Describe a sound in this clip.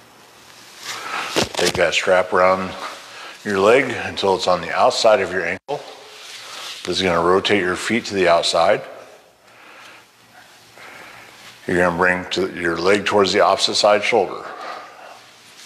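A man speaks calmly and clearly, pausing between phrases.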